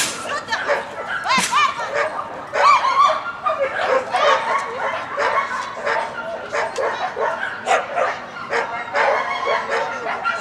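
A young woman calls out commands to a dog with animation.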